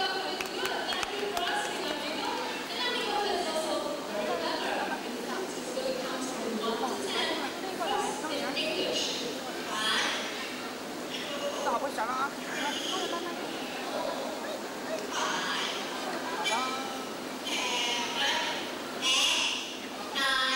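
A parrot squawks and chatters.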